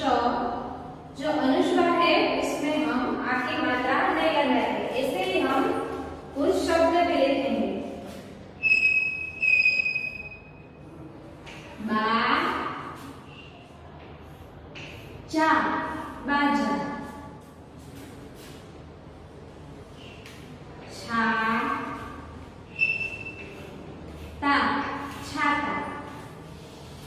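A young woman speaks calmly and clearly, as if teaching, close by.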